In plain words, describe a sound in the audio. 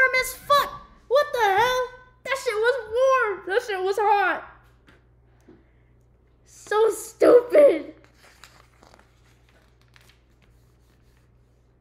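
Cardboard pieces rustle and click as hands handle them.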